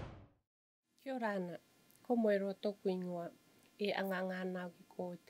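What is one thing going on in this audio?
A middle-aged woman speaks calmly and close to a microphone.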